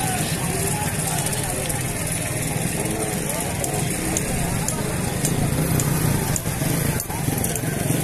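Several men talk nearby.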